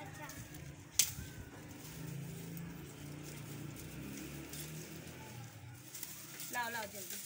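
Dry stalks and leaves rustle and crackle as they are handled.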